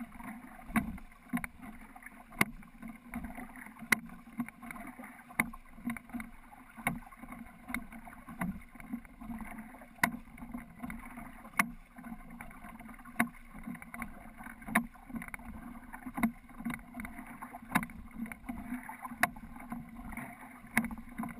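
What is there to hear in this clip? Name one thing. Wooden oars knock rhythmically in their oarlocks.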